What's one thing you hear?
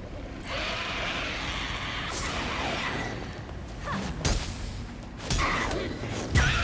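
Blows land with sharp, heavy thuds during a fight.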